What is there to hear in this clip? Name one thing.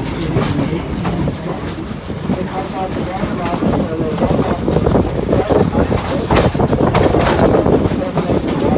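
A passenger train car rumbles and clatters along the track.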